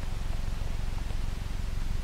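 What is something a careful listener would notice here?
Footsteps scuff slowly on a hard floor.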